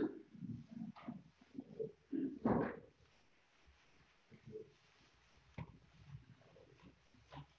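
Heavy cloth rustles and swishes close by.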